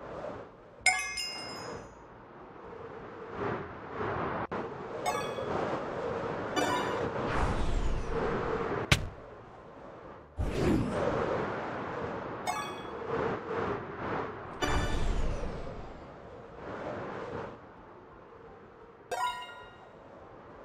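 A bright chime rings out each time a ring is passed.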